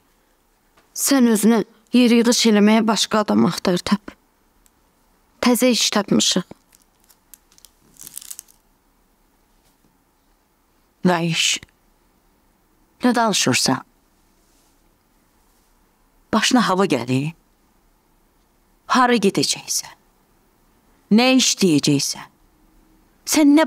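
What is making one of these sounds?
A middle-aged woman speaks firmly, close by.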